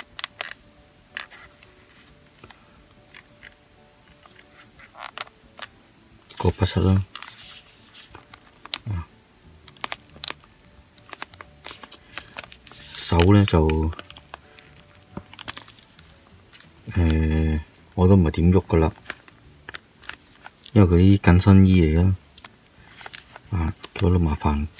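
Small plastic joints of a toy figure click and tick as they are moved by hand.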